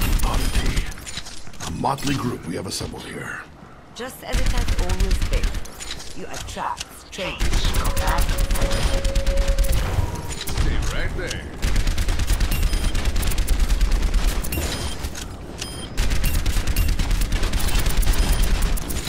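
A rifle fires in rapid bursts, close up.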